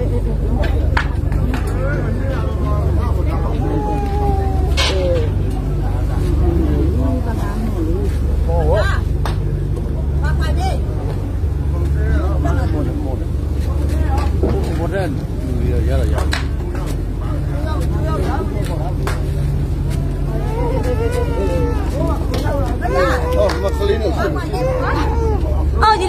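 A crowd of passengers talks and calls out.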